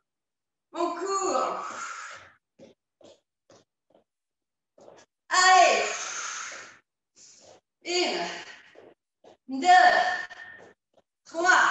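A young woman calls out energetic instructions in an echoing hall.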